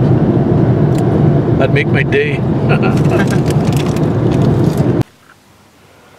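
A car engine hums and tyres roar on a highway, heard from inside the car.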